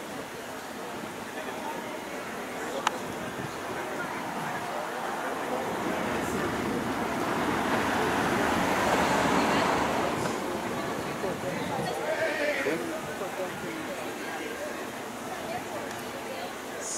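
A crowd of men and women murmur and talk outdoors at a distance.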